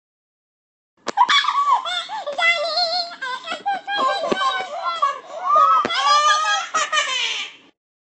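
A high, squeaky, sped-up cartoon voice chatters with animation.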